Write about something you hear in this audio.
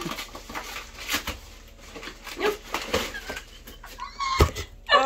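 Paper rustles and crinkles as a package is unwrapped.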